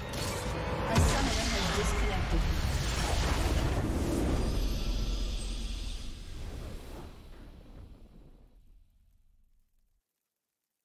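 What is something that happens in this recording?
A triumphant fanfare swells and then fades away.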